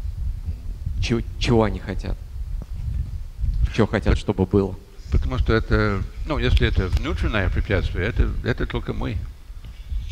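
An elderly man speaks calmly through a headset microphone.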